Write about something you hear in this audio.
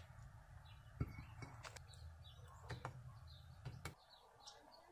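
Metal tongs clink against metal.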